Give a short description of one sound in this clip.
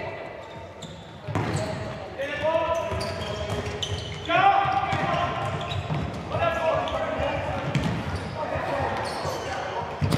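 A ball thuds as players kick it on an indoor court.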